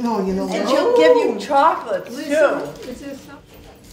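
Several elderly women chatter and talk over each other close by.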